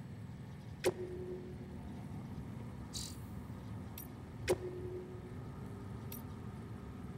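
Short electronic menu chimes sound now and then.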